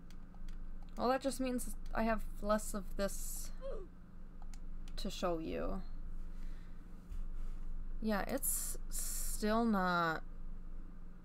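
A young woman speaks with animation into a headset microphone, close up.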